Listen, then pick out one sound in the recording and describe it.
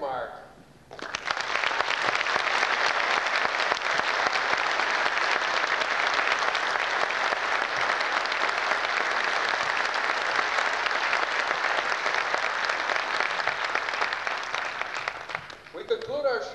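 An audience applauds loudly and steadily.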